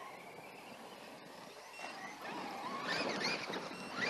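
Small electric model cars whine as they race nearby.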